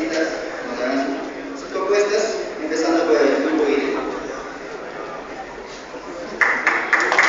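A man speaks through a loudspeaker in an echoing hall.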